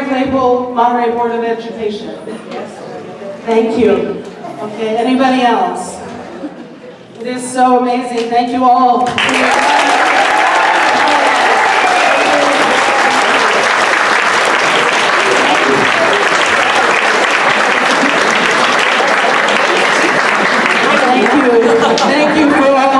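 A woman speaks with animation through a microphone in a large room.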